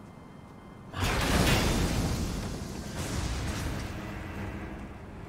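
A sword swings and strikes.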